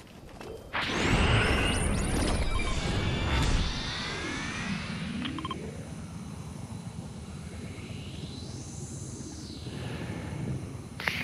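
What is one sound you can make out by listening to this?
Wind rushes past a figure gliding through the air.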